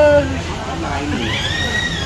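A spoon clinks against a cup.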